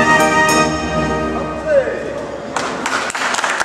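A fairground organ plays a loud, bright tune and then stops.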